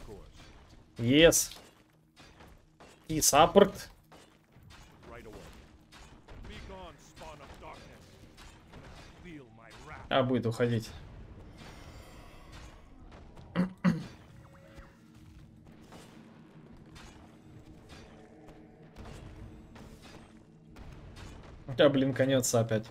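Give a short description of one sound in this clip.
A young man talks with animation into a close microphone, in short loud bursts.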